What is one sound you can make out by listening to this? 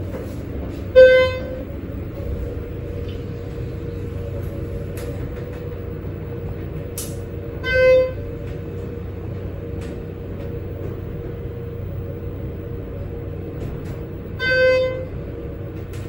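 An elevator chime dings three times.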